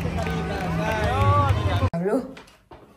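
Music and crowd noise fill the air outdoors.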